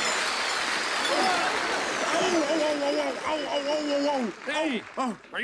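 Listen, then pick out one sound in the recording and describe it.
An elderly man speaks gruffly and with animation.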